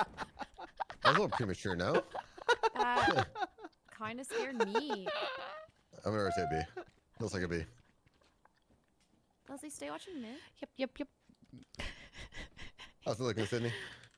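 A young woman laughs and talks with animation into a microphone.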